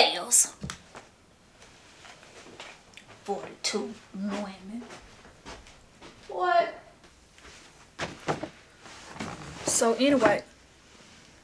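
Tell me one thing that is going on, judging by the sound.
A young woman speaks casually and close by, with pauses.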